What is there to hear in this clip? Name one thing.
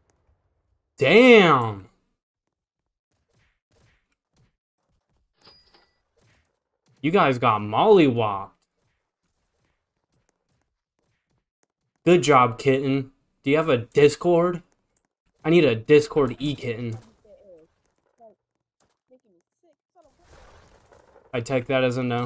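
A young man speaks with animation into a close microphone, in bursts.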